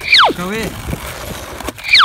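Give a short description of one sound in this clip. Skateboard wheels roll over asphalt.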